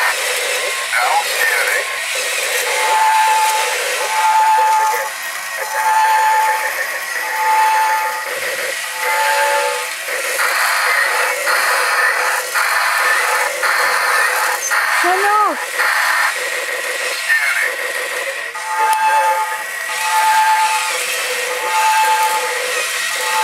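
Small toy robot motors whir and clatter as the robots move about.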